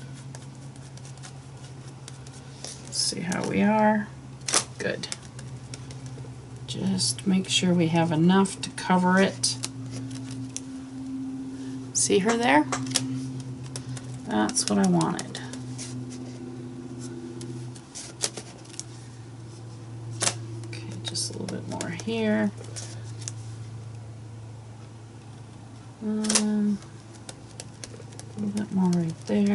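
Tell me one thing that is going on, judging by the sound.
A sponge dabs and rubs against paper.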